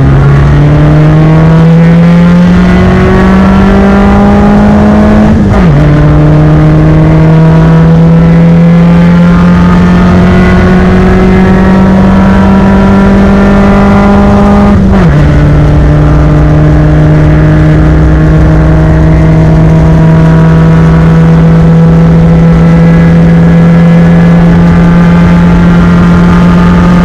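A car engine roars loudly up close, its pitch climbing steadily through the gears.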